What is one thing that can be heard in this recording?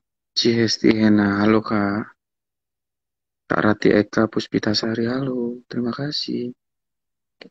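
A young man speaks calmly and close to the microphone.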